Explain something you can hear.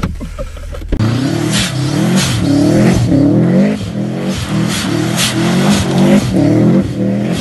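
A car engine revs hard outdoors as the car slides on snow.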